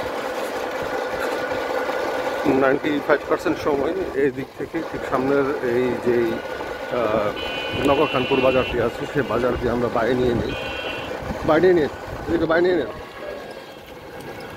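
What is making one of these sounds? A motor rickshaw hums steadily while riding along a road.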